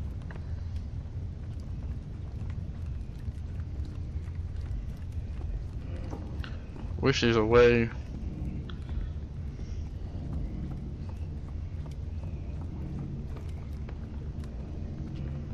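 Light footsteps patter softly on a tiled floor.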